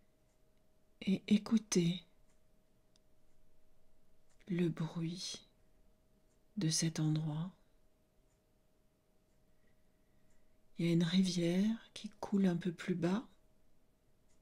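A middle-aged woman speaks slowly and calmly into a close microphone, with long pauses.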